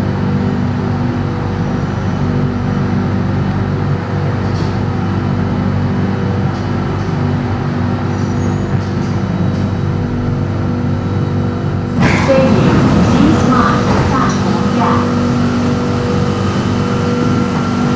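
A train's motor hums and rumbles steadily inside the carriage.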